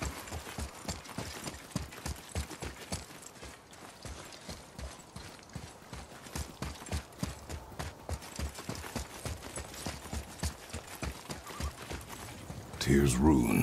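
Heavy footsteps run quickly over a stone floor.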